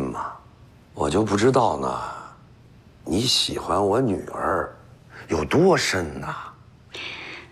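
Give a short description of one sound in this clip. A middle-aged man speaks loudly and teasingly, close by.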